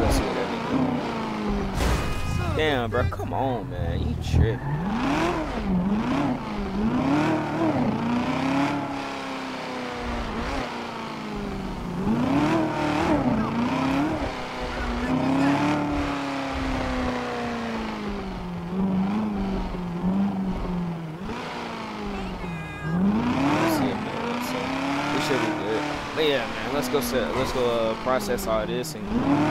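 A sports car engine revs up and down as the car accelerates and shifts gears.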